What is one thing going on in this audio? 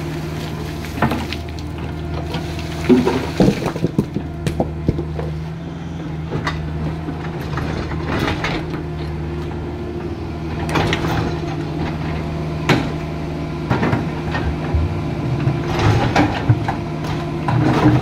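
Rocks clatter and knock against an excavator bucket.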